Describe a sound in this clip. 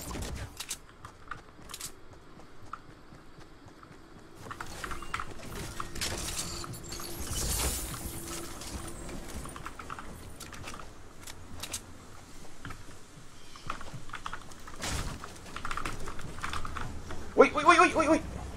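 Footsteps patter quickly on grass and pavement.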